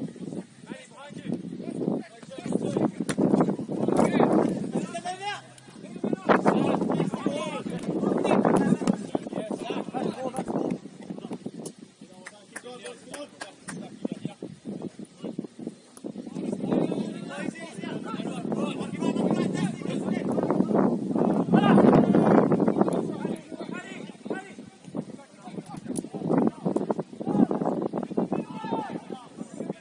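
Young men shout to each other at a distance outdoors.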